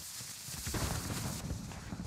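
A vehicle fire crackles and roars nearby.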